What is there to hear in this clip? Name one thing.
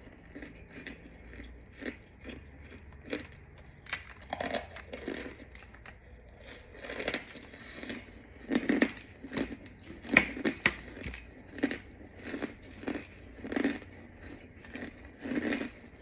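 Gloved hands crunch and crumble chalky blocks.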